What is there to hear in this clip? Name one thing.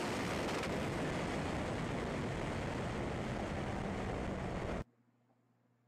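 A race car engine roars loudly at full throttle.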